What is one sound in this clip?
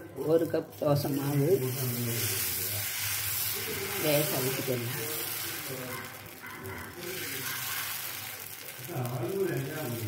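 Batter sizzles loudly on a hot pan.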